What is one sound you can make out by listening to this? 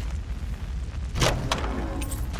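A wooden chest lid creaks open with a thud.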